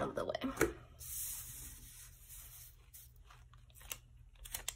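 Sheets of paper rustle and slide against each other.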